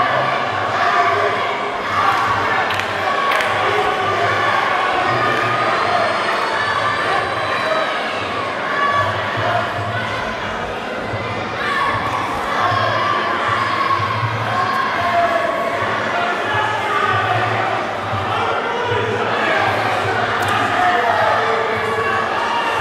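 A crowd murmurs and shouts in a large echoing hall.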